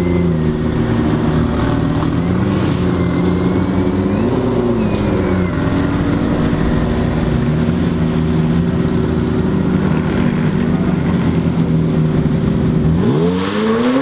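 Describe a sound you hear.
A sports car engine rumbles and revs outdoors.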